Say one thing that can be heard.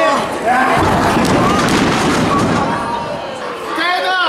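A wrestler's body thuds onto a ring mat.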